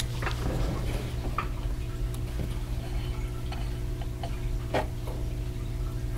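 Small scissors snip thread with quick, light clicks.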